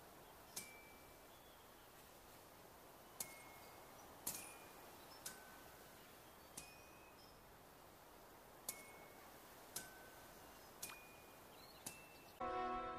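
A ball is kicked with a short bright chime, again and again.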